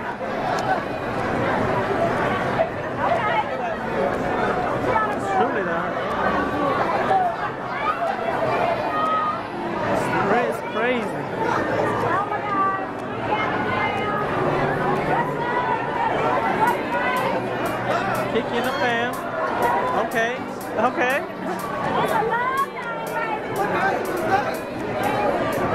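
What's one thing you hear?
A crowd of people chatters all around in a large echoing hall.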